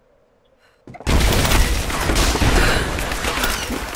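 A loud blast roars with rushing debris.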